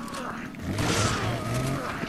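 A shotgun fires a loud blast.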